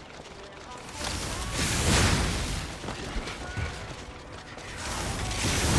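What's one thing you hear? Heavy weapon blows crash and burst loudly.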